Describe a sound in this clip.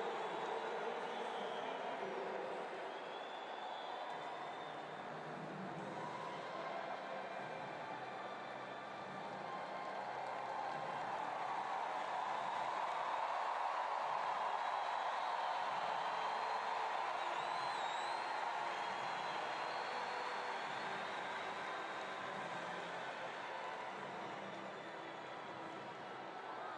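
A large stadium crowd murmurs and cheers, echoing across the open arena.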